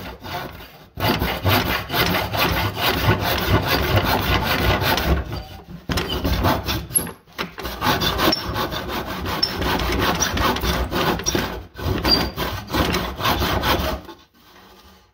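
A hand saw cuts through wood with quick rasping strokes.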